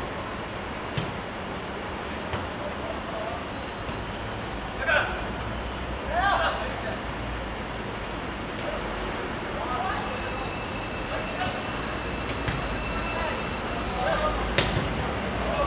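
A football is kicked on a grass pitch with dull thuds.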